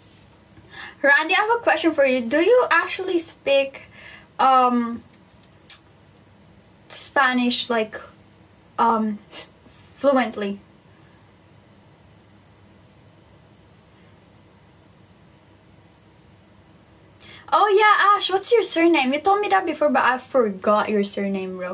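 A young woman talks with animation close to a phone microphone.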